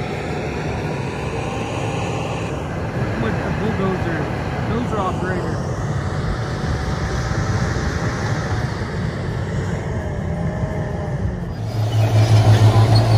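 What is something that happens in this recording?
A bulldozer's diesel engine rumbles steadily nearby.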